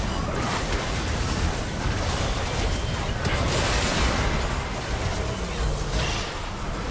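Game spell effects crackle and boom during a fast battle.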